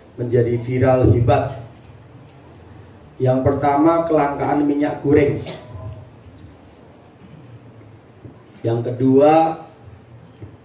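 A middle-aged man speaks calmly into a handheld microphone, in short phrases with pauses.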